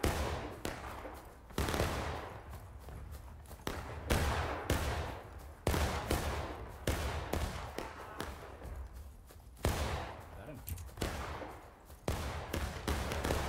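Gunshots crack repeatedly outdoors, each followed by a rolling echo.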